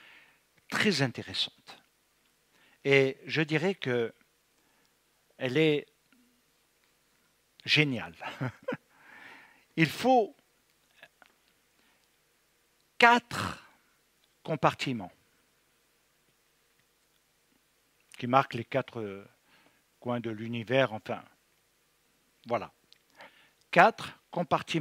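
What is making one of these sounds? An elderly man speaks with animation into a headset microphone, in short bursts with pauses.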